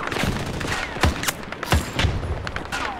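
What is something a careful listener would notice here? A rifle fires sharp shots close by.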